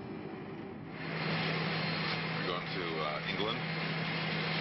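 An airliner cabin hums steadily.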